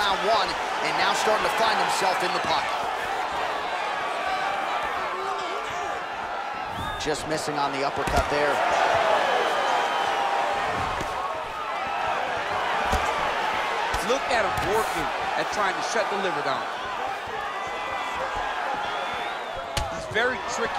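A large crowd cheers and murmurs steadily in an echoing arena.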